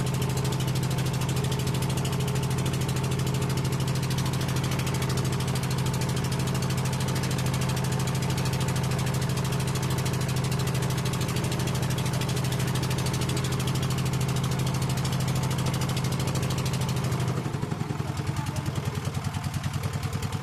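A small boat engine drones steadily close by, then drops to a slower chug.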